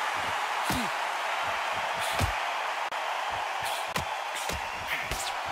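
Punches land with dull thumps.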